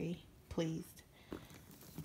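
A hand brushes against a leather bag.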